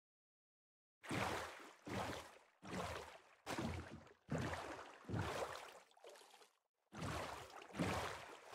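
Oars splash through water in a steady rowing rhythm.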